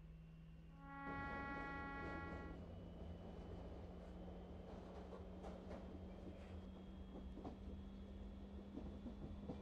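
Train wheels roll over rails.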